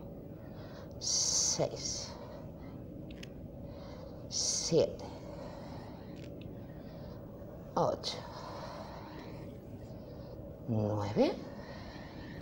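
A young woman breathes out hard with each push-up.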